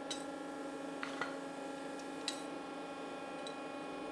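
Tongs clink lightly against metal.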